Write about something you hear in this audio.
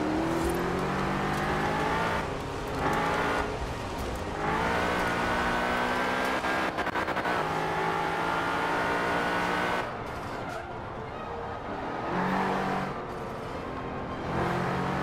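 A car engine revs hard, rising in pitch through the gears.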